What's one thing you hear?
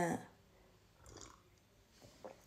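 A young woman sips a drink.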